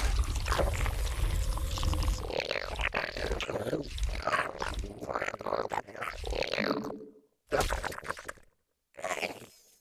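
A young man talks quickly and with animation.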